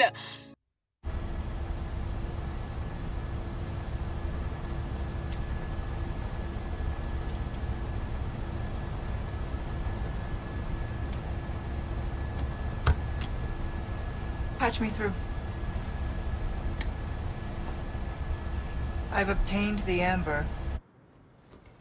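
An aircraft engine drones steadily inside a cabin.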